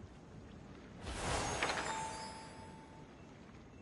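A magical electric spell crackles and bursts with a sharp zap.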